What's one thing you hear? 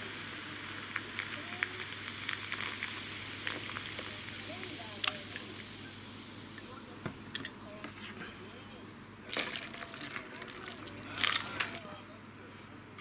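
A fizzy drink crackles and hisses in a glass of ice.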